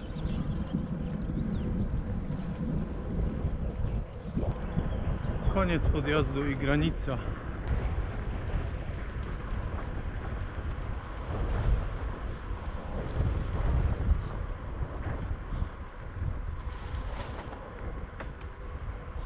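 Bicycle tyres roll and hum steadily along a paved path.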